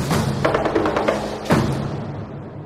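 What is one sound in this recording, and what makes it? A group of performers chants loudly.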